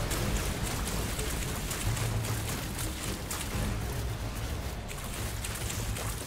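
Footsteps splash through shallow water.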